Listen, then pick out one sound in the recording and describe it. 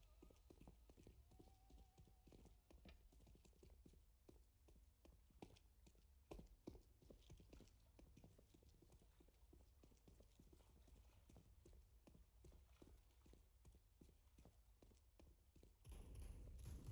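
Footsteps tap quickly on stone.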